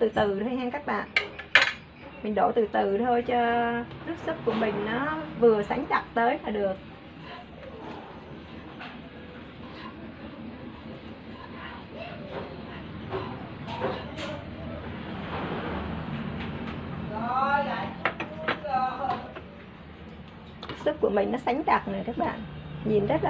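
A metal ladle clinks against a metal pot.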